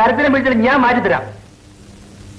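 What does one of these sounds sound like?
A man shouts loudly and close by.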